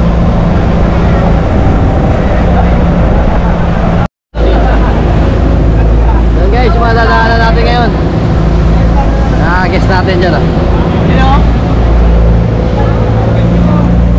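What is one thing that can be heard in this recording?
A boat engine hums and rumbles steadily close by.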